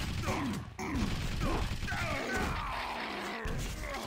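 A rocket explodes with a loud blast.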